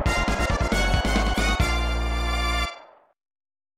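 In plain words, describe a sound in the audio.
Upbeat electronic game music plays loudly.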